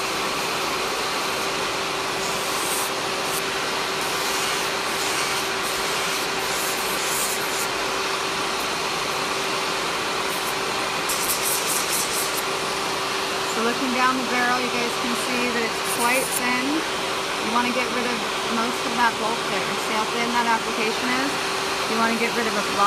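A sanding bit buffs against a fingernail.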